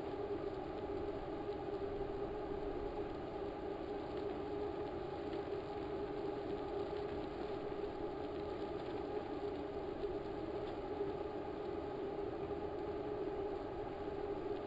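An indoor bike trainer whirs steadily as a rider pedals.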